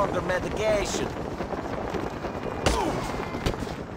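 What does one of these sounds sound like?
A body thuds onto pavement.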